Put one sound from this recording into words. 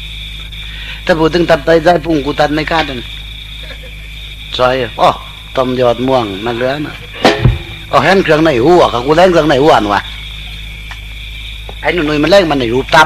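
A man sings a slow melody through a recording.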